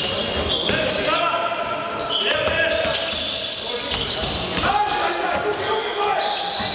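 Basketball shoes squeak sharply on a wooden court in a large echoing hall.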